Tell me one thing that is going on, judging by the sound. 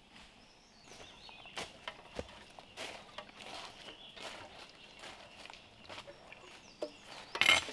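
Footsteps crunch and rustle through dry leaves.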